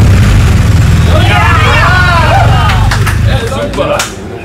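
Several men laugh and cheer together.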